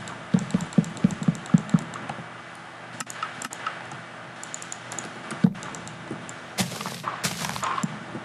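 Wooden blocks are placed with short knocks.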